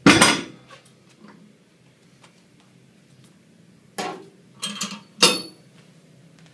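Metal weight plates clank and knock together sharply.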